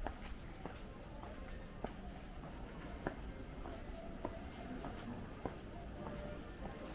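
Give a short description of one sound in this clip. Footsteps tap steadily on pavement close by.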